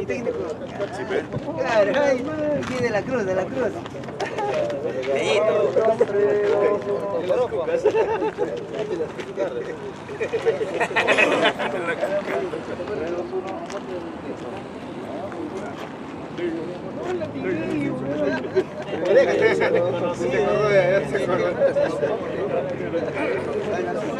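Several men talk with each other nearby, outdoors.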